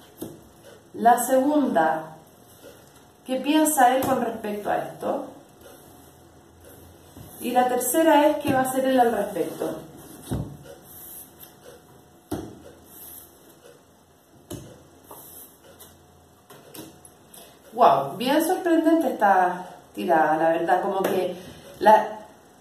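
A woman speaks calmly and close by, in pauses.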